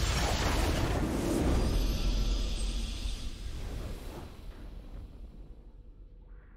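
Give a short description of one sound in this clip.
A video game's victory fanfare swells and then fades.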